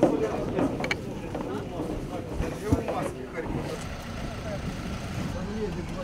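Heavy boxes thump as they are loaded.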